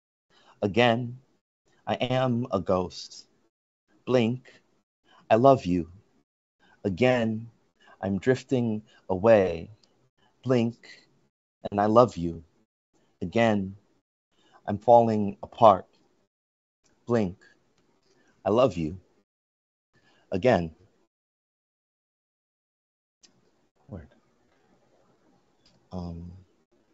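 A man speaks calmly and closely through an online call, in short phrases with pauses.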